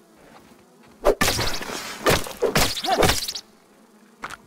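Heavy wet blows strike a creature in quick succession.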